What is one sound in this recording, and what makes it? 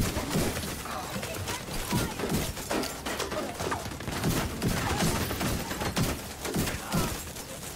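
Fire roars and crackles from an explosion.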